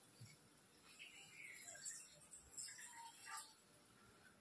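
Water pours from a small cup into a metal pot.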